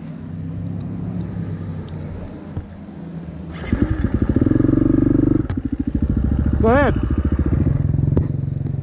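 A dirt bike engine idles and revs up close.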